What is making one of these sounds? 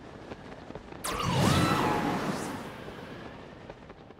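A magical energy burst swells with a shimmering, ringing whoosh and fades away.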